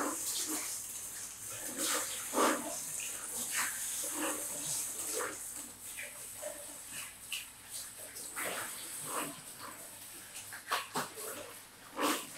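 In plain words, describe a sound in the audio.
Water sprays from a shower head onto hair and splashes into a basin.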